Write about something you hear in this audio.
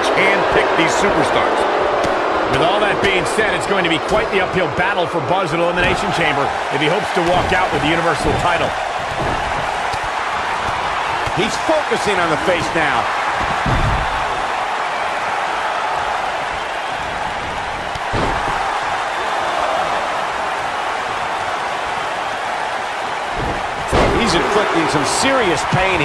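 Heavy blows and body slams thud on a wrestling ring.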